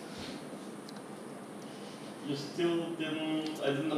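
A man gulps down a drink.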